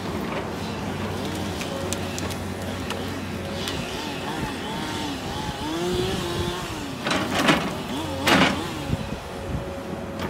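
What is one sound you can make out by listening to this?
Hydraulics whine, rising and falling in pitch.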